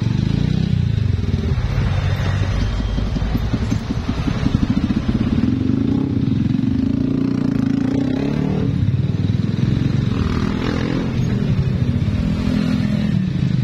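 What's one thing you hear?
A motorcycle engine rumbles and putters close by.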